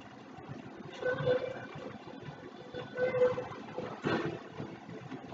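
Short electronic menu beeps play from a television speaker.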